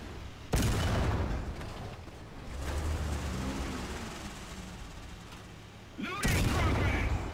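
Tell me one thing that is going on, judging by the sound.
A tank cannon fires with a loud, booming blast.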